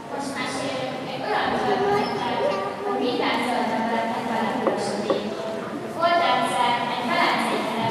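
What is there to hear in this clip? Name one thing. A group of young girls sings together in a large echoing hall.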